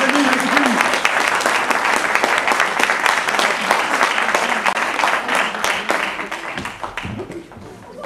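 An audience claps and cheers loudly in a hall.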